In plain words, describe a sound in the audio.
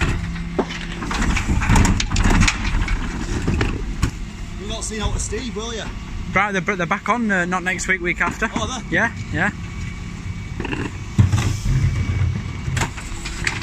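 A garbage truck's engine rumbles steadily close by.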